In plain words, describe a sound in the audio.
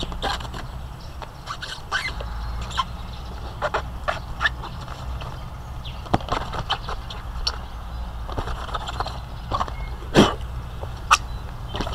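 Hollow plastic barriers knock and rattle as they are handled.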